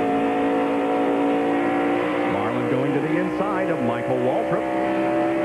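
A race car engine roars loudly at high speed, close by.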